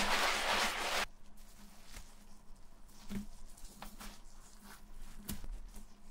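Gloved fingers rub over a rough insole.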